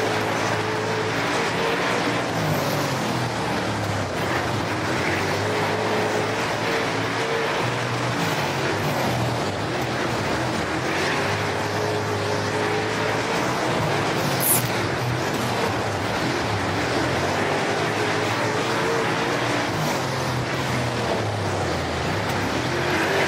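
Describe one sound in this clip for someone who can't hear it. Tyres rumble and scrape over loose dirt.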